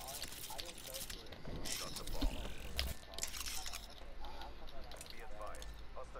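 A weapon clicks and rattles as it is switched.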